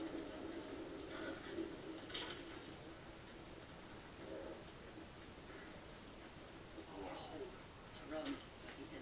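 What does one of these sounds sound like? Horse hooves thud on grassy ground.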